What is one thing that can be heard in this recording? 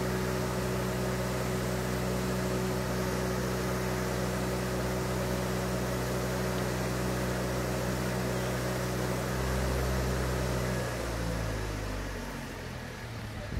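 A heavy lifting machine's engine rumbles steadily, then winds down.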